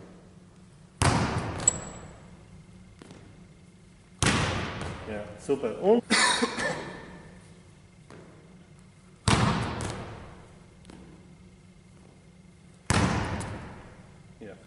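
A basketball bounces loudly in a large echoing gym.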